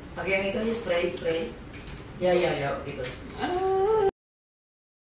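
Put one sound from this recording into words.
A woman sings close by.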